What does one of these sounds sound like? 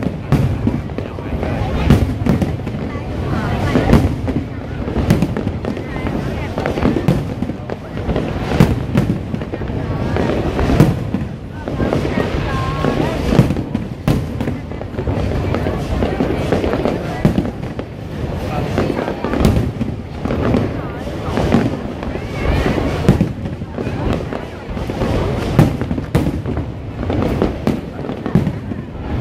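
Fireworks boom and crackle overhead, echoing between buildings.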